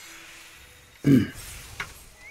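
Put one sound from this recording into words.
A game menu closes with a short sound effect.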